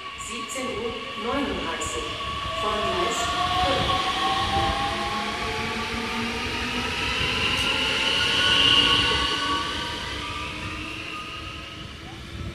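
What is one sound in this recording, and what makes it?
A train rolls past close by with a steady rumble that fades as it pulls away.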